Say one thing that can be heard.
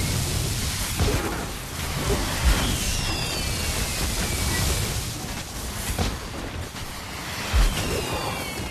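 Heavy impacts thud now and then.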